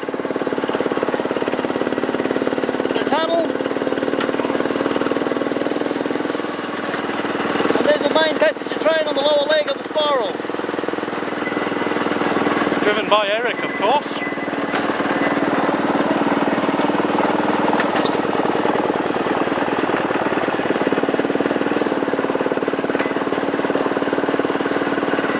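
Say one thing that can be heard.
Train wheels clatter rhythmically along the rails.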